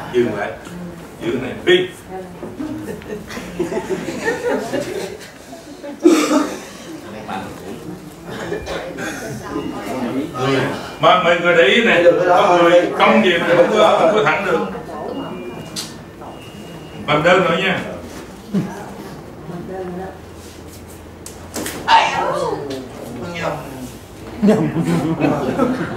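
Several men talk nearby in a room.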